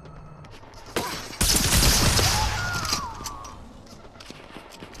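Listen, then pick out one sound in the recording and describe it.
Guns fire in loud, rapid bursts.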